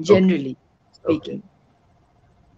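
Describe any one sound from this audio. A woman speaks briefly and warmly over an online call.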